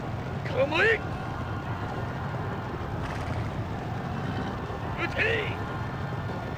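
A horse whinnies.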